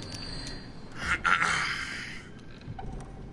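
A wooden chest creaks open with a burst of sound.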